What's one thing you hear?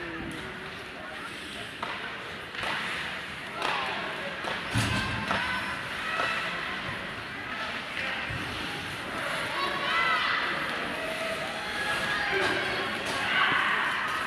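A crowd of spectators murmurs and calls out in an echoing arena.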